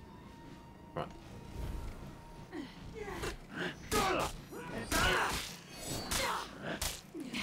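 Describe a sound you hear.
Metal blades clash and ring in a sword fight.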